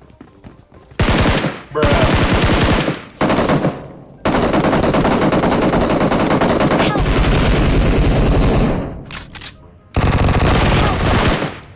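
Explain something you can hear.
Gunfire rattles in loud bursts.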